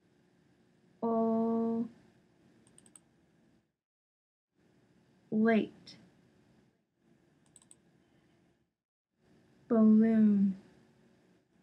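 A young woman says single words clearly and slowly.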